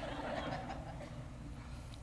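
A woman laughs softly nearby.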